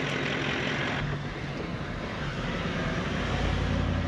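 A car engine hums steadily from inside the cab.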